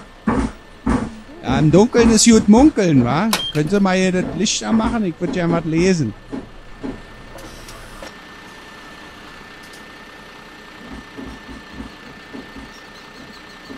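A bus engine idles with a low, steady hum.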